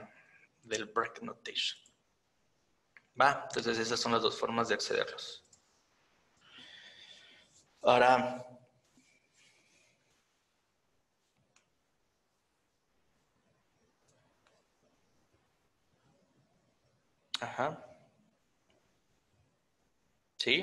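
A man speaks calmly into a microphone, in bursts with long pauses.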